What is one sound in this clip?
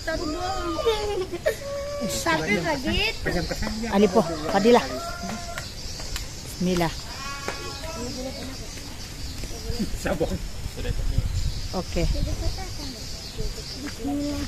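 Men talk nearby with animation.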